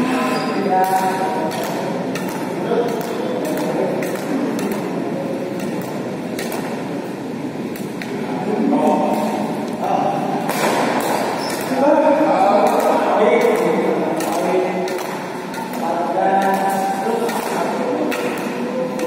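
Men talk and call out across a large echoing hall.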